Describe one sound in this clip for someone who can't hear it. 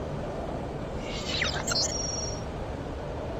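An electronic interface chime plays.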